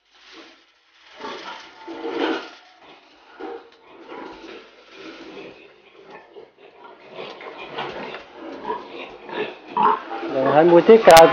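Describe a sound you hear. Pigs grunt and squeal while feeding.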